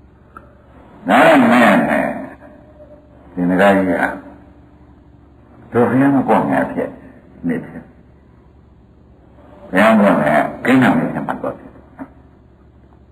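An elderly man speaks slowly and calmly in short phrases, close to a microphone.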